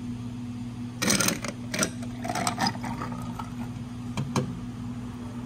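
Ice cubes clink and rattle.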